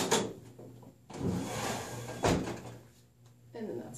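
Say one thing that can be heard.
A metal panel clunks as it is moved into place.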